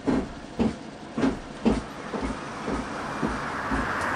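Bus doors close with a thud.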